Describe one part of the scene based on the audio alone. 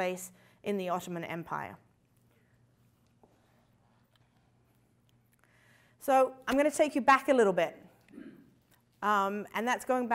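A young woman speaks with animation into a microphone, pausing now and then.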